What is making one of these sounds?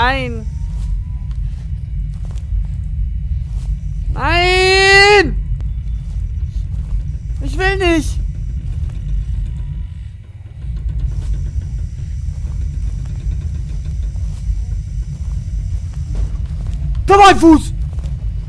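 A young man makes loud, drawn-out exclamations close to a microphone.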